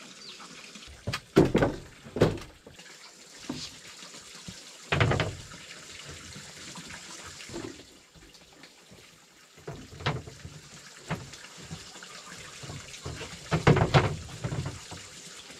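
Wooden boards knock and clatter as they are handled and fitted into a wooden frame.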